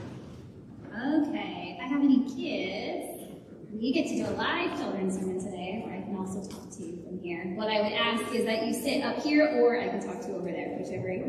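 A woman speaks with animation in an echoing hall.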